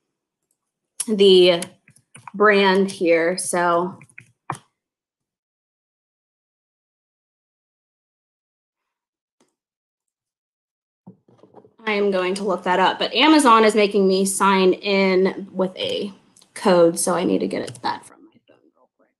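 A young woman speaks calmly and close to a microphone, with long pauses.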